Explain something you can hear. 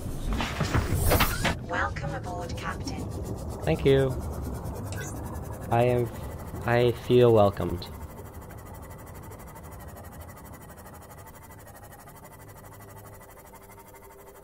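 A small submarine's motor hums steadily underwater.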